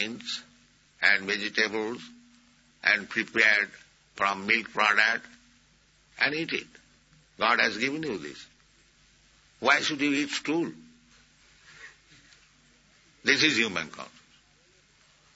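An elderly man speaks slowly in short phrases with pauses between them.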